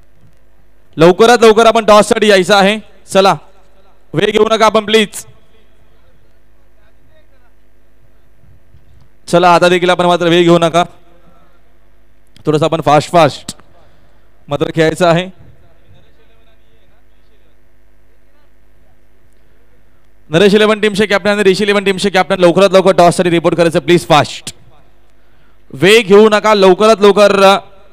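A man commentates with animation through a microphone, in short bursts with pauses.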